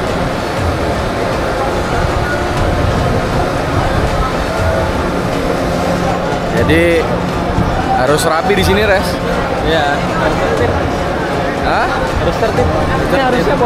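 A large crowd murmurs and shuffles along in an echoing tunnel.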